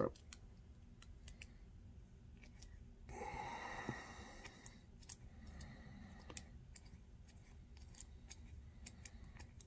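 Small metal parts click softly between fingers.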